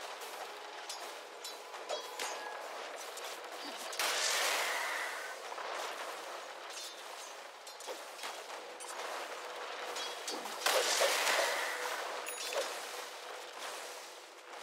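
Game characters clash in battle with magic blasts and weapon hits.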